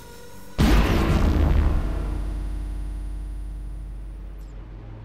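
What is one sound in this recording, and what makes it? A heavy metallic clang rings out and slowly fades away.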